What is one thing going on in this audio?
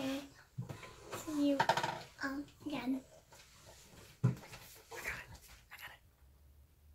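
A young girl talks animatedly close by.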